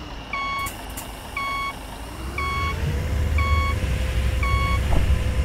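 A bus engine rumbles low and grows louder.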